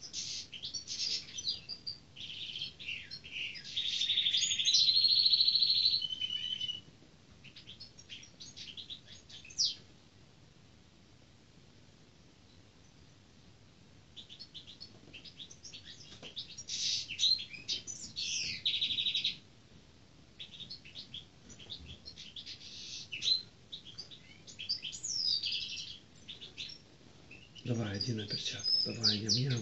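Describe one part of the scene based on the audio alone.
A hawk gives shrill, rapid screeching calls in short bursts.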